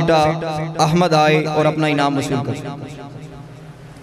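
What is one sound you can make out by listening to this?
A young man chants loudly into a microphone through a loudspeaker.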